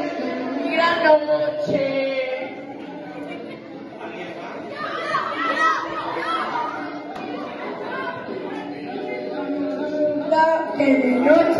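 A man talks to a group in an echoing room.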